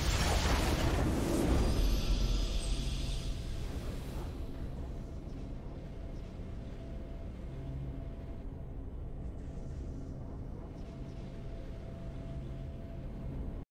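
A triumphant fanfare plays softly and holds.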